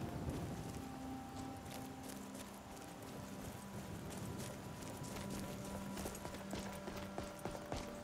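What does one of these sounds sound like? Footsteps crunch through dry grass and onto stone.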